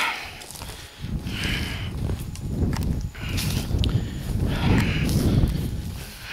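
Dry grass rustles and swishes as it is brushed aside.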